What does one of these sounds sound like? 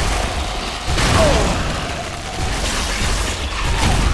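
A blade swings and strikes with a heavy thud.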